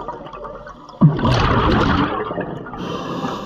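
Air bubbles rush and gurgle loudly underwater.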